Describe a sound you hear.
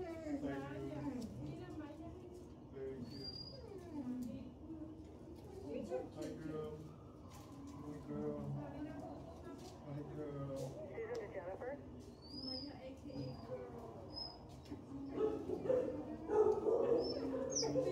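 A dog whines and howls up and down, close by.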